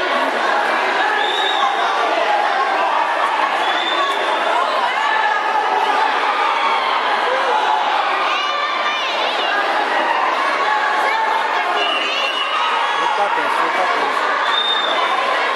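A large crowd chatters and shouts in an echoing hall.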